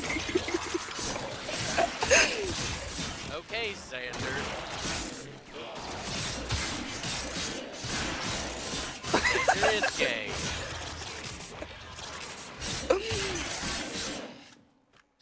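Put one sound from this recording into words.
Game weapons clash and slash in rapid bursts.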